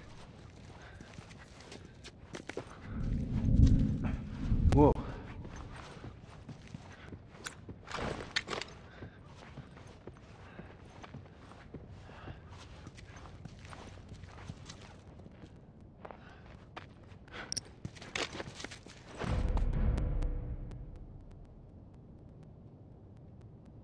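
Footsteps shuffle softly across a hard floor.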